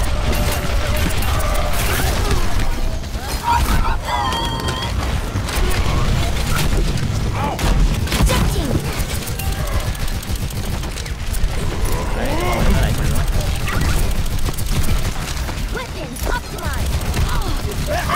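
Energy blasts whoosh and crackle nearby.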